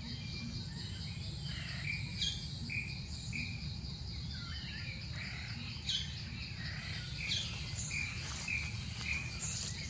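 A small animal rolls and scuffles in dry leaves close by.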